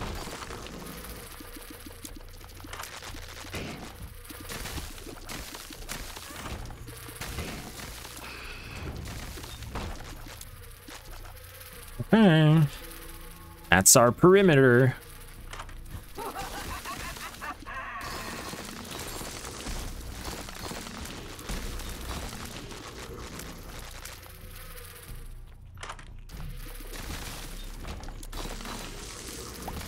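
Electronic game sound effects chirp and blast.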